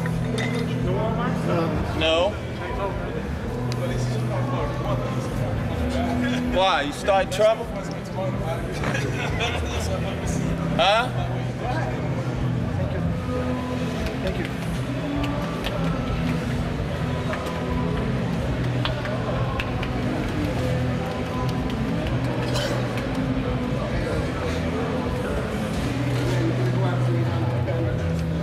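Many men chatter in a hubbub nearby.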